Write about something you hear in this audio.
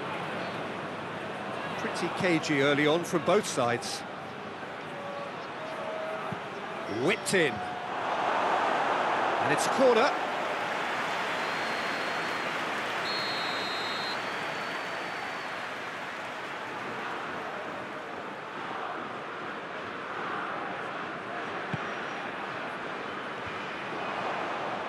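A large stadium crowd roars steadily, swelling loudly for a few seconds near a goalmouth chance.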